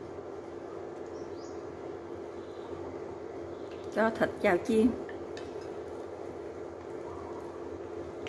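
Meat sizzles gently in hot oil in a pan.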